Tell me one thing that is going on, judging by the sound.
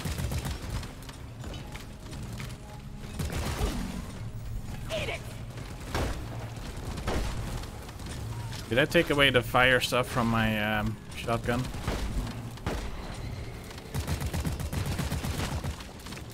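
A futuristic gun fires in rapid bursts.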